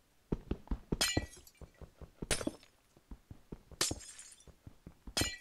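Ice blocks shatter with a sharp crackle.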